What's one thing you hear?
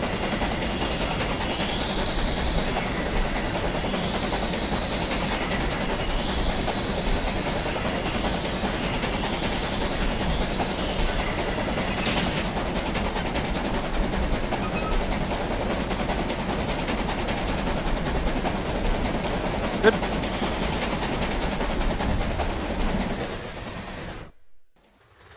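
A steam locomotive rumbles and chuffs steadily through a tunnel.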